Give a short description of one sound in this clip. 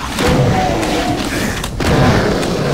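A fireball explodes with a deep boom.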